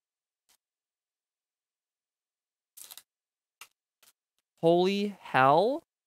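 A foil card wrapper crinkles as it is torn open.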